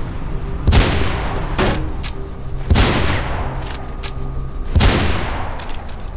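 A sniper rifle fires loud, booming shots that echo away.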